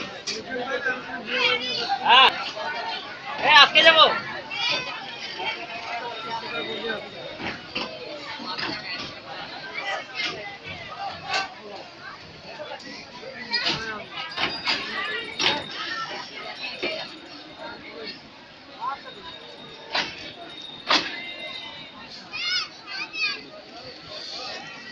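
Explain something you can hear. A crowd of men and boys chatter and call out nearby.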